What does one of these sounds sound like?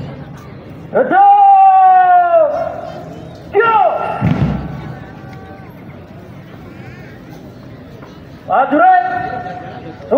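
A man nearby calls out long, drawn-out commands in a loud voice.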